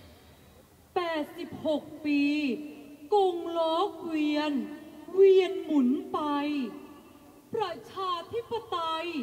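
A singer performs in a high, wavering voice over loudspeakers.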